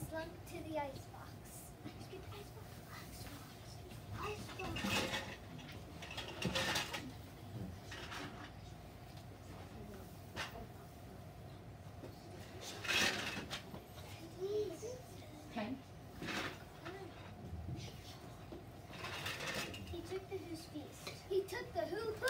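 Young children speak and call out nearby in a room.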